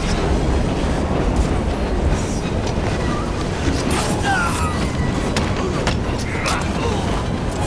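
Heavy punches and blows land in a scuffle.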